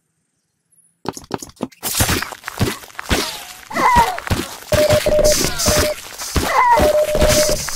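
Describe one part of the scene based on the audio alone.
A crowbar strikes a body with wet, heavy thuds, again and again.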